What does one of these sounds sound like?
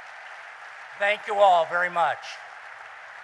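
A man speaks into a microphone over loudspeakers in a large hall.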